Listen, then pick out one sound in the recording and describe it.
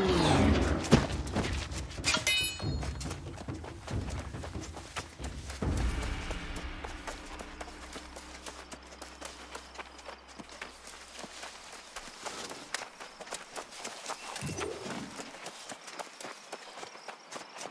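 Armoured footsteps tramp through undergrowth.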